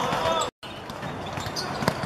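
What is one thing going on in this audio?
A football is kicked.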